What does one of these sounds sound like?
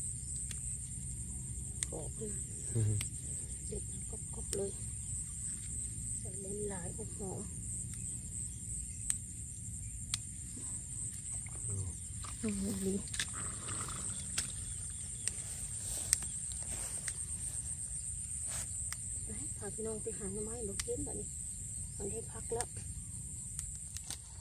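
Rice plants rustle as hands pull at them.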